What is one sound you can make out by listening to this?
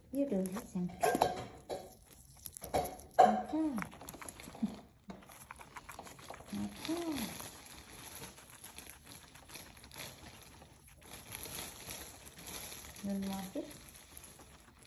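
A guinea pig munches on crisp leaves close by.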